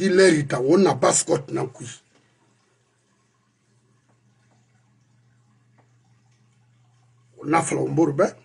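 An older man speaks with animation, close to a microphone.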